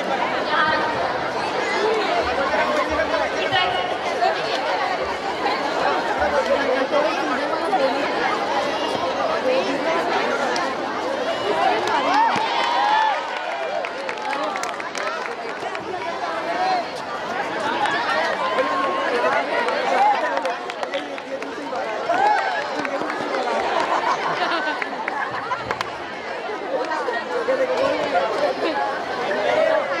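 A large crowd of children chatters and shouts loudly outdoors.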